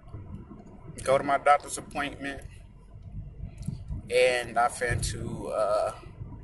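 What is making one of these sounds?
A young man talks casually, close by.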